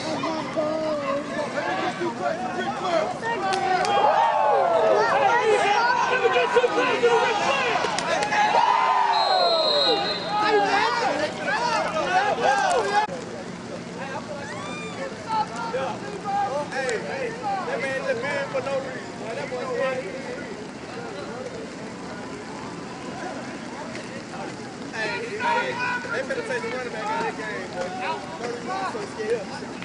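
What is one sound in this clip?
A crowd of spectators shouts and cheers close by, outdoors.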